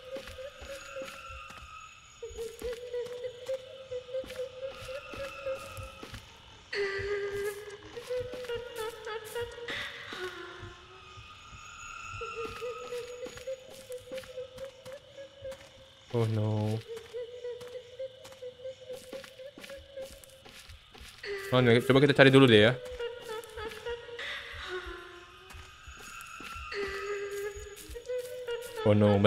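Footsteps crunch on grass and leaves.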